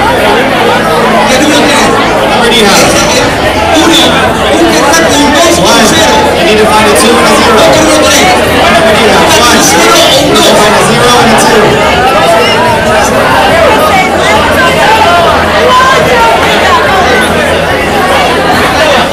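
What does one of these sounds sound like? A crowd of people chatters and moves about.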